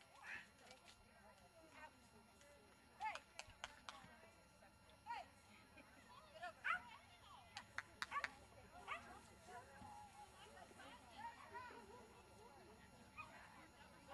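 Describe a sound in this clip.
A man calls out commands to a dog from a distance, outdoors.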